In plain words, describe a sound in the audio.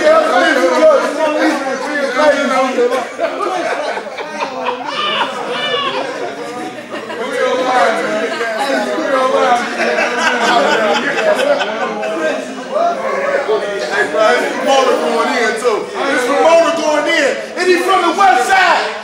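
Several men talk and laugh loudly nearby, in a room with some echo.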